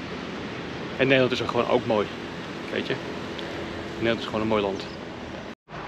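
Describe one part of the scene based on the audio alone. A man talks casually close to a microphone.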